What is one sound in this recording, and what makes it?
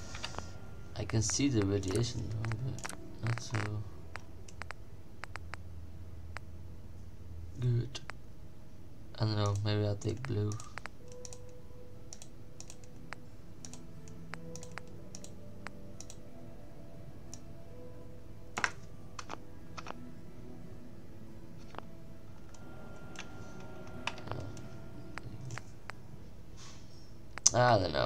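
A game menu clicks softly as options change.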